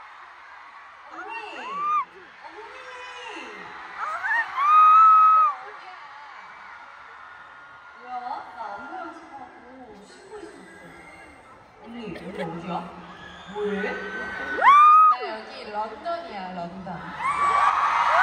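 A young woman talks cheerfully over loudspeakers.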